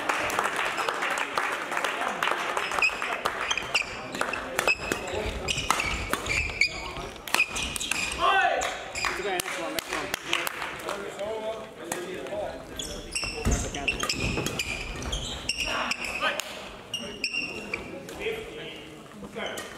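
Rackets strike shuttlecocks with sharp pops, echoing in a large hall.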